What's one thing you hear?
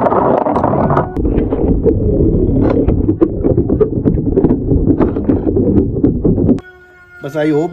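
Spinning tops clatter and splash against each other in shallow water.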